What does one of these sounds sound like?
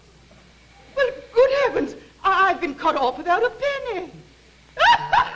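A middle-aged woman speaks with animation.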